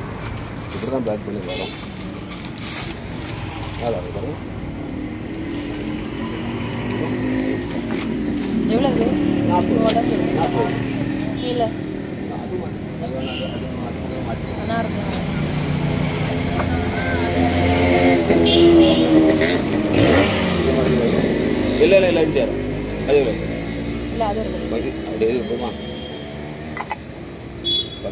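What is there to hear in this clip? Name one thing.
Paper rustles as a man unwraps a clay pot.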